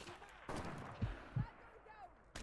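A rifle fires a loud, booming shot.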